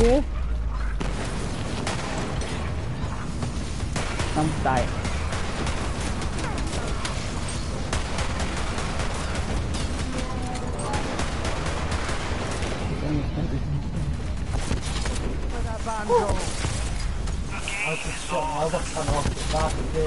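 Rapid gunfire and explosions from a video game rattle and boom throughout.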